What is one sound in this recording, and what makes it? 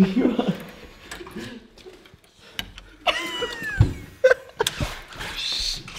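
Keys jingle and scrape in a door lock.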